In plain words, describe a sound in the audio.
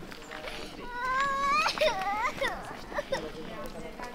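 A young child calls out in a high voice nearby.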